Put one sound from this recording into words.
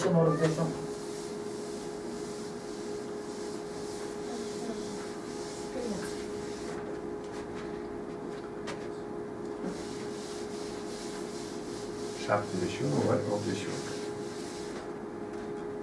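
Chalk rubs in broad strokes across a blackboard.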